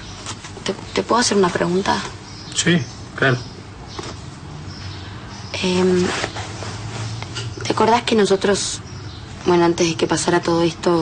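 A young woman speaks close by in short bursts.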